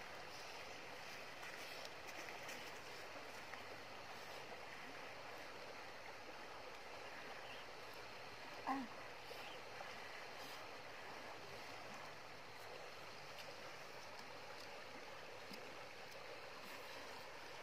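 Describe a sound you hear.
A shallow river rushes over stones.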